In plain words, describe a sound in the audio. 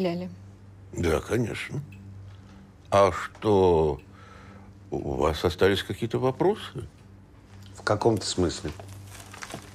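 An elderly man speaks in a tired voice nearby.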